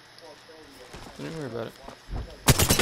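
A young man speaks briefly through a microphone.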